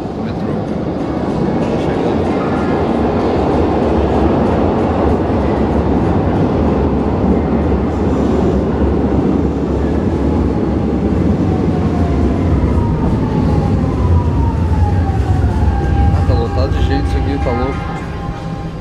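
An underground train rumbles loudly into an echoing station.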